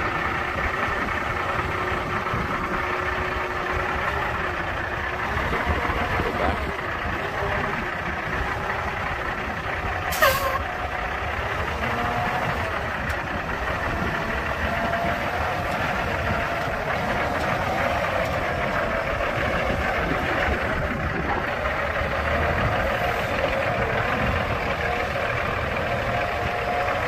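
A truck engine idles steadily nearby.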